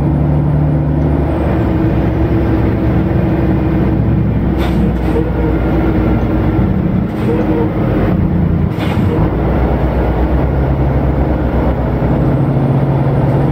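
A truck engine hums steadily and changes pitch as the truck drives.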